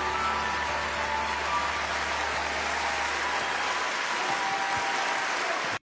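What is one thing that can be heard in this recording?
A large crowd claps and cheers loudly in a big hall.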